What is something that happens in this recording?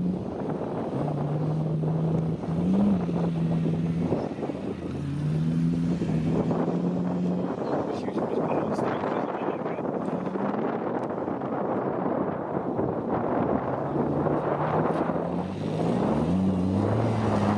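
A car engine revs hard, rising and falling.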